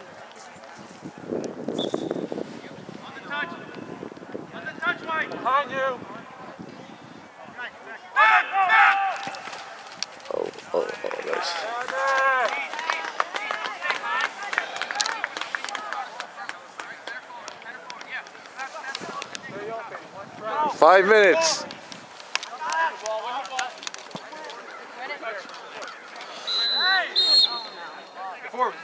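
Young players shout to each other outdoors on an open field.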